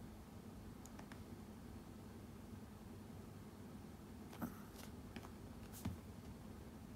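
A small dog's claws tap on a hard seat.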